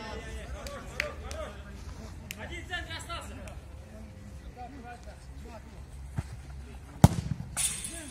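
A football is kicked with sharp thuds.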